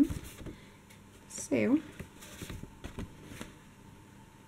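Sheets of stiff paper rustle softly in a hand.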